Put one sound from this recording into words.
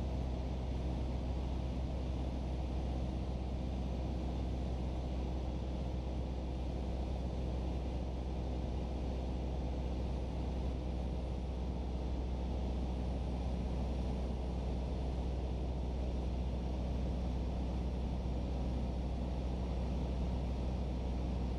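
A small propeller plane's engine drones loudly and steadily.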